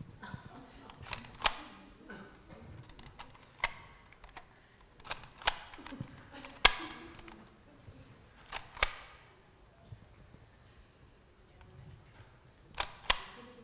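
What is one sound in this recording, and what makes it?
A small handheld device clicks sharply several times.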